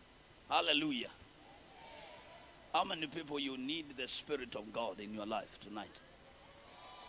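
A young man speaks with animation through a microphone in a large echoing hall.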